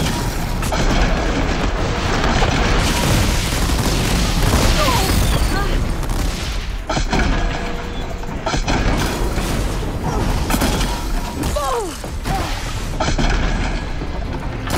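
Mechanical creatures roar and screech.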